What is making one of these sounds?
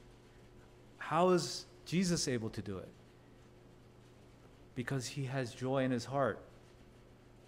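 A man speaks calmly into a microphone, in short phrases with pauses.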